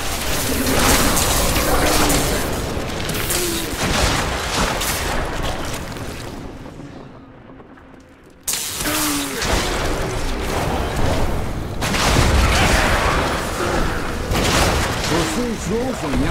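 Ice shards burst and shatter with a sharp tinkling.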